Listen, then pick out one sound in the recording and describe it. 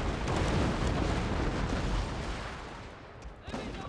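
Wind blows hard through a snowstorm.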